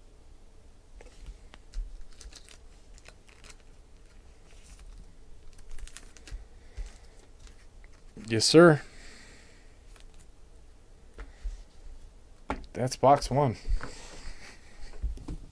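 A card rustles and taps softly as a hand handles it.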